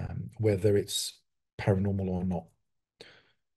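A man speaks calmly into a close microphone, as if on an online call.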